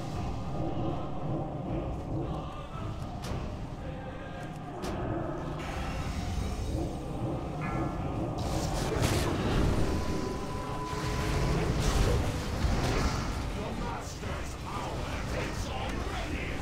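Magic spells blast and crackle amid roaring flames.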